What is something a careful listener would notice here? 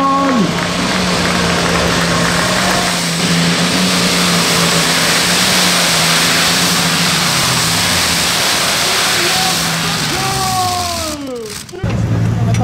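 A powerful tractor engine roars close by and then slowly winds down.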